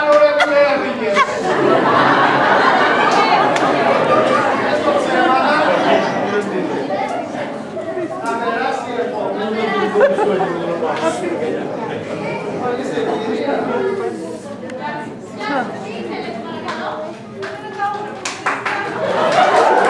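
A woman speaks with animation, heard from within an audience.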